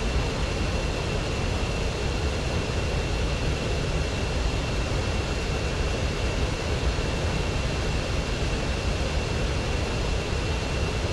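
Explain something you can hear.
A jet engine whines with a steady high tone.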